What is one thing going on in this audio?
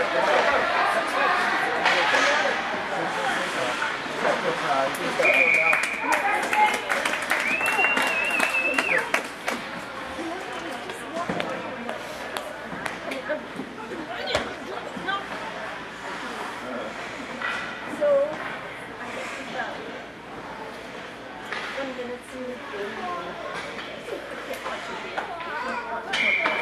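Skates scrape and glide across ice in a large echoing rink.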